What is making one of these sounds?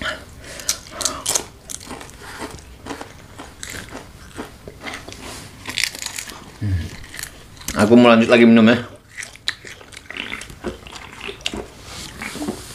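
Crisp snacks crunch loudly between teeth, close up.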